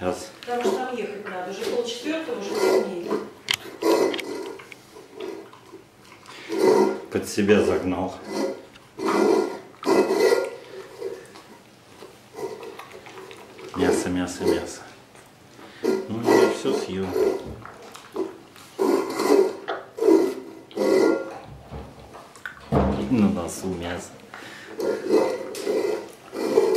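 A metal bowl clinks and scrapes on a tiled floor.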